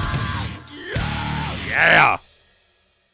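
A man shouts loudly into a microphone.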